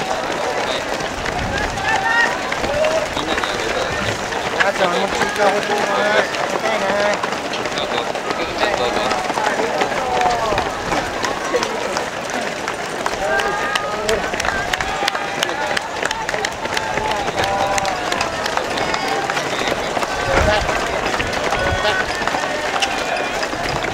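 Many runners' footsteps patter on the road.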